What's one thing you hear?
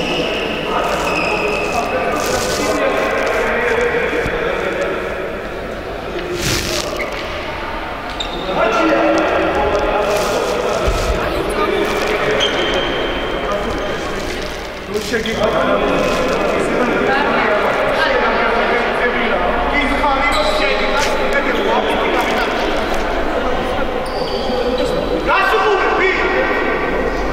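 A man talks to a team, heard in a large echoing hall.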